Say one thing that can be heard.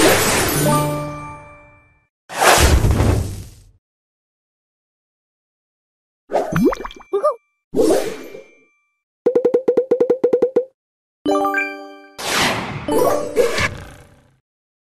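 Playful game sound effects chime, pop and whoosh in short bursts.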